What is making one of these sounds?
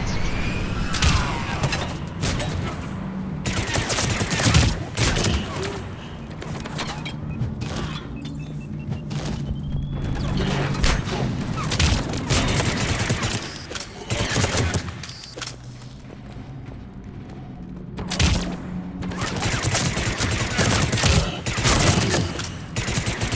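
Gunfire bursts out in rapid, loud volleys.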